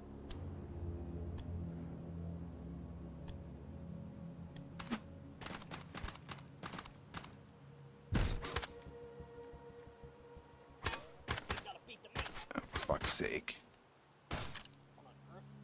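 Metal parts clatter and click as a gun is handled.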